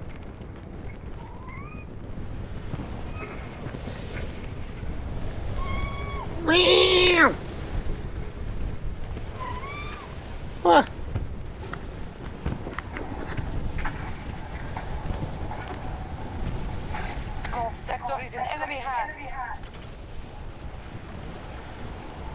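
Wind rushes steadily past a gliding wingsuit flyer.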